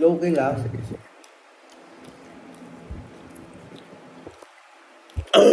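A young man chews crunchy food close by.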